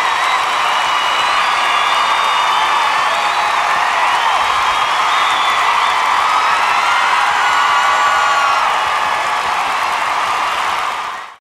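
A large crowd cheers and applauds in a big hall.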